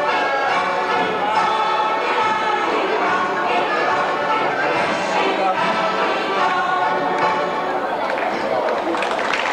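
A group of men and women sing together in a large hall.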